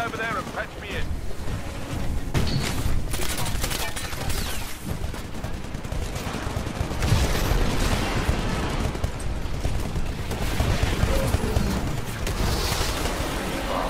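Explosions boom and crackle with fire.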